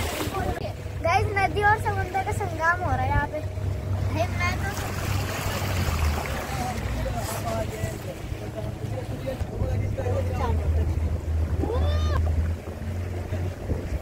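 A young boy talks excitedly close by.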